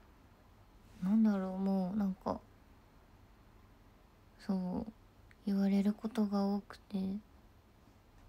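A young woman speaks briefly and animatedly close to a microphone.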